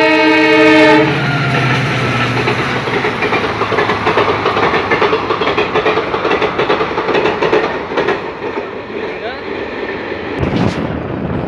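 A passenger train rumbles and clatters past on the rails.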